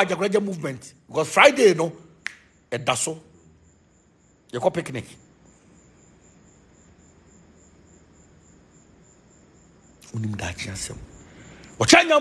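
A man speaks with animation close to a phone microphone, pausing between phrases.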